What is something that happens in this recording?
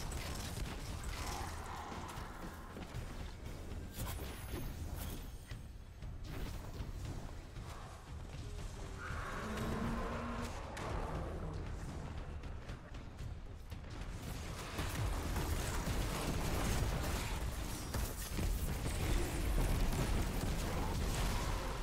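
Energy blasts crackle and roar.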